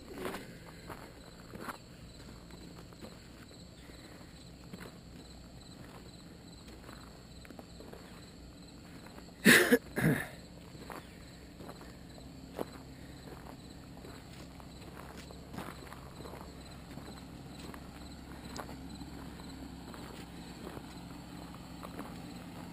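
Tyres crunch and bump over a rough dirt track.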